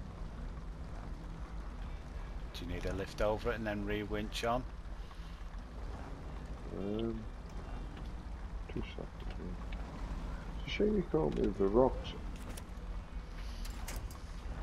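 Wooden planks creak and knock under tyres.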